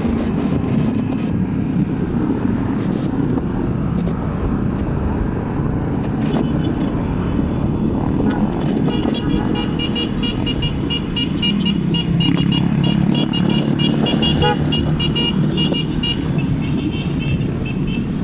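Wind rushes past loudly, as if heard while riding outdoors.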